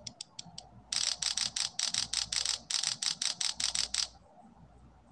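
Coins jingle in a rapid run of bright chimes from a game.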